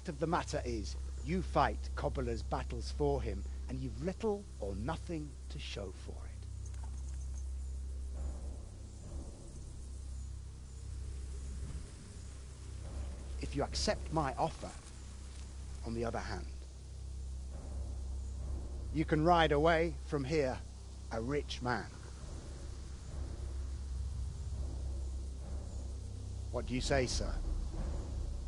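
A middle-aged man speaks calmly and firmly, close by.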